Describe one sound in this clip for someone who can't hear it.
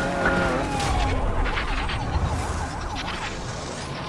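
A car crashes with a heavy metal impact.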